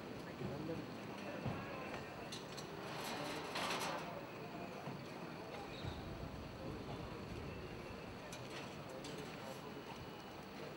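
Men talk in low voices nearby.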